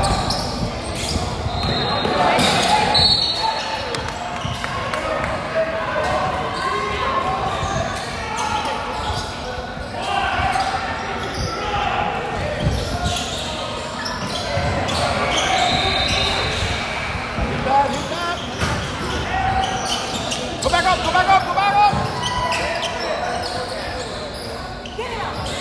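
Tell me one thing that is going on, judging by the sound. Young men call out to each other across a large echoing gym.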